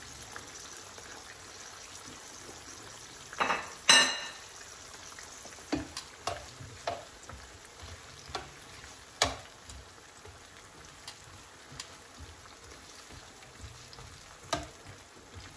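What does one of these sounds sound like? Chiles and onions sizzle gently in oil in a frying pan.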